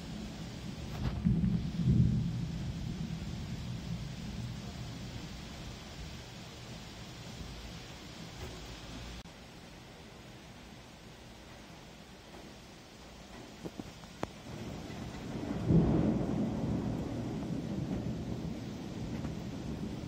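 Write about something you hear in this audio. Thunder rumbles loudly nearby and slowly fades.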